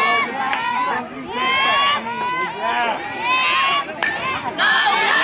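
A crowd of children and adults cheers and shouts nearby outdoors.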